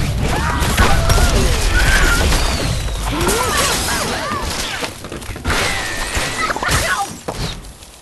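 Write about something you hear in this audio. Blocks crash and clatter as a tower collapses.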